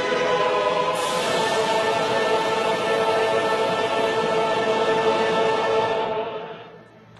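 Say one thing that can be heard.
Cymbals crash.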